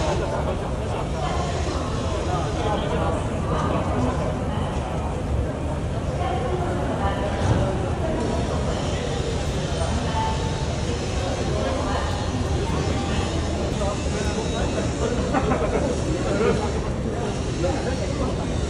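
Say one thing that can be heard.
Men talk in low voices nearby.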